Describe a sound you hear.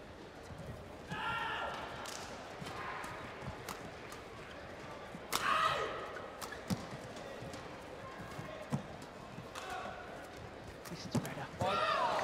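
Rackets smack a shuttlecock back and forth in quick, sharp hits.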